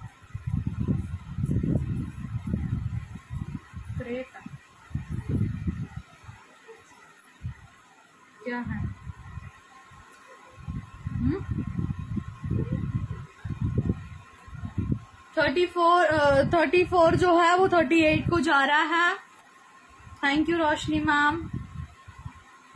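A young woman talks calmly and closely.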